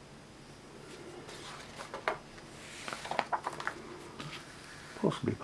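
Paper pages rustle and flap as a booklet page is turned.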